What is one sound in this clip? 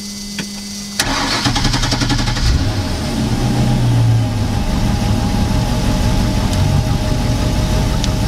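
A battery load tester hums and buzzes under load.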